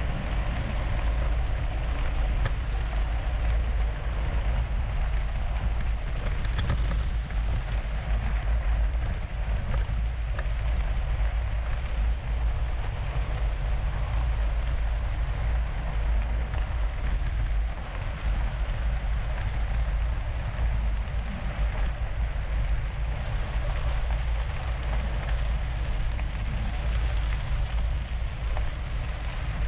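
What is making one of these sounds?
Bicycle tyres crunch steadily over gravel.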